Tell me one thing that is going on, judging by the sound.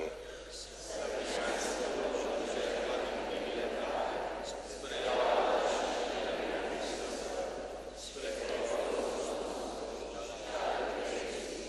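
A crowd of people recites together in a low murmur.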